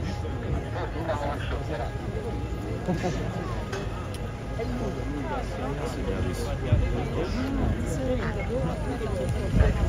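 A crowd of young people chatters and calls out close by, outdoors.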